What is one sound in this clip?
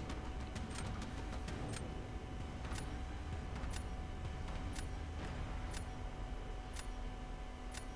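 A timer ticks once a second.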